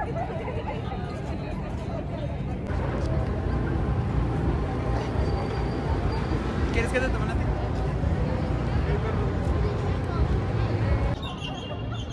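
A crowd of people chatters outdoors in the distance.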